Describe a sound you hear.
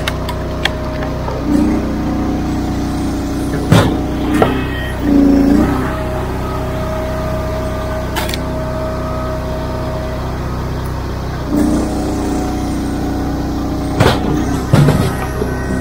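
An engine runs steadily with a low hum.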